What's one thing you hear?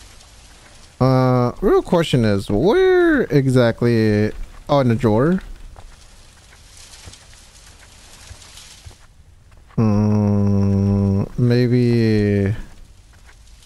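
A young man speaks with animation, close to a microphone, sometimes drawing out his words.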